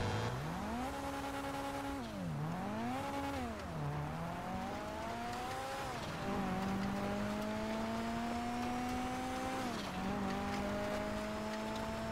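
A car engine revs up and down, rising and falling in pitch.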